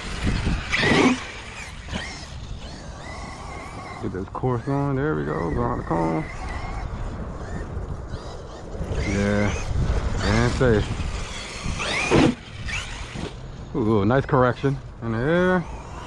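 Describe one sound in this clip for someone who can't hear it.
A radio-controlled 4x4 truck's electric motor whines as it accelerates and slows.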